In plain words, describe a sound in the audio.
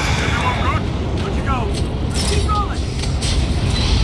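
A heavy metal lever clunks.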